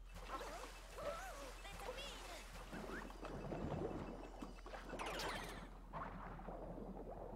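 Water sloshes and churns as a game character swims.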